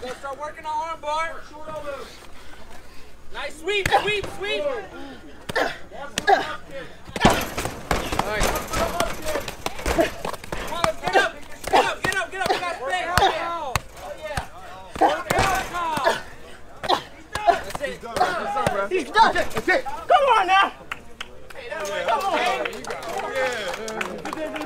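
A crowd of onlookers shouts and cheers outdoors.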